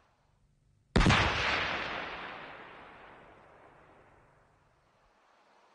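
A loud explosion booms outdoors and rumbles away slowly.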